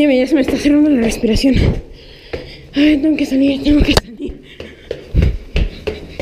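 Footsteps thud on concrete stairs.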